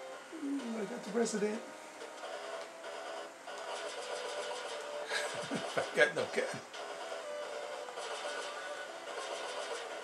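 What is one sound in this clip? Upbeat electronic video game music plays steadily through a television speaker.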